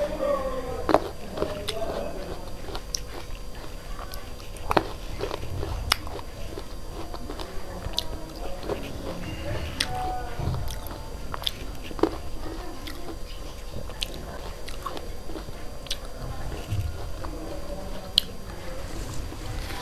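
A young woman chews grapes close to the microphone.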